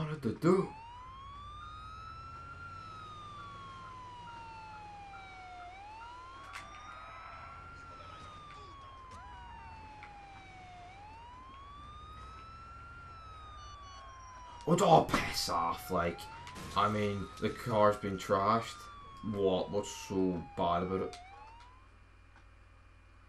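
A siren wails, rising and falling in long sweeps.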